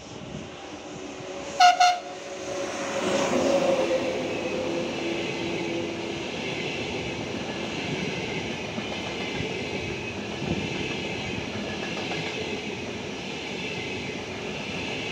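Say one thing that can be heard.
A high-speed train rushes past close by with a steady roar and rumble.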